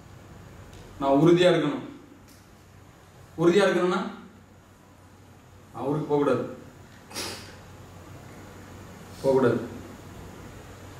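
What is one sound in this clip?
A man calls out loudly in short, sung phrases in a reverberant room.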